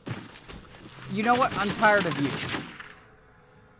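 A submachine gun fires in bursts.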